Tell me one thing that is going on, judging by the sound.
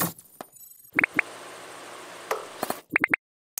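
A small electronic device beeps in short bursts.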